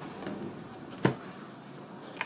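A cardboard box lid flips open.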